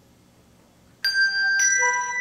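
Handbells ring out in clear, bright tones.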